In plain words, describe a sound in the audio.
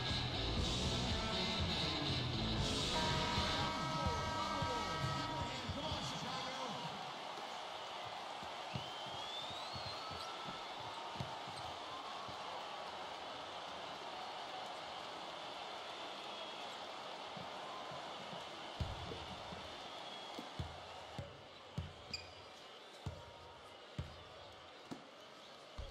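A large crowd cheers and murmurs in a big echoing arena.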